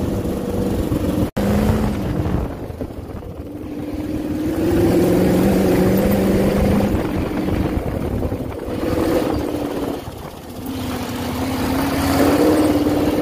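A dune buggy engine roars and revs up and down.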